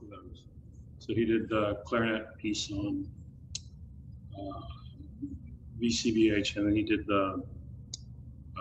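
A middle-aged man speaks calmly, heard through a microphone.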